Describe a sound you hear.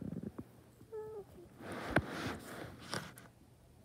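A soft blanket rustles under a rubbing hand.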